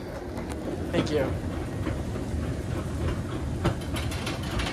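Footsteps tap on metal escalator steps.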